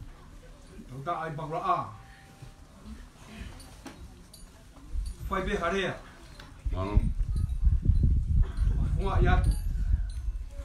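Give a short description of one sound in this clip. A man speaks nearby in short, calm phrases.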